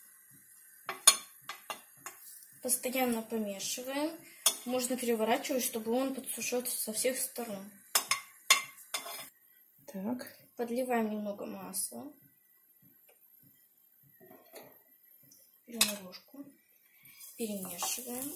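A metal spoon scrapes and clinks against a frying pan.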